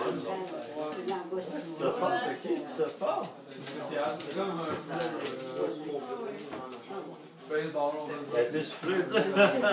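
Several adults talk and laugh nearby in a lively room.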